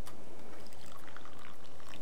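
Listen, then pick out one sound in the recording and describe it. Hot water pours from a flask into a cup.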